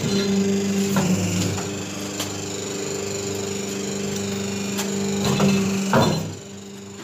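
A press thumps down with a heavy clunk.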